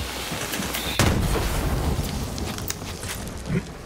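A laser gun fires with a sizzling buzz.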